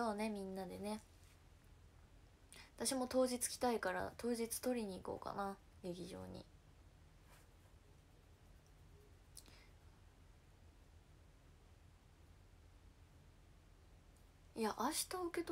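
A young woman speaks close to the microphone, in short bursts with pauses.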